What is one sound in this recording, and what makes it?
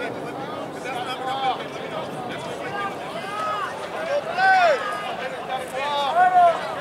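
Spectators call out and cheer loudly.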